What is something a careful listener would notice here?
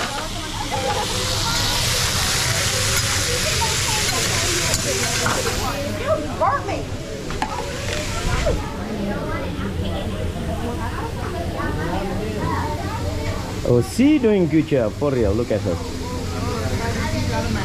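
A crowd of people chatter and laugh nearby in a busy room.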